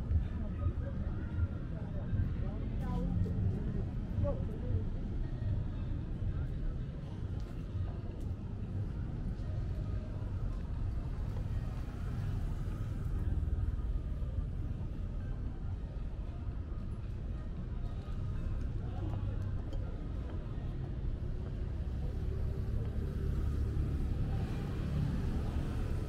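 City traffic rumbles steadily in the background outdoors.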